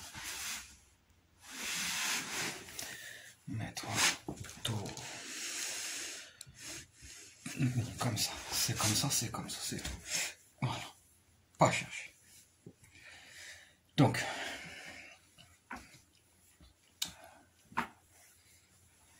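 A fabric blanket rustles as a man wraps it around himself.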